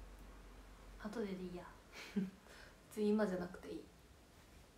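A young woman speaks softly and briefly into a nearby microphone.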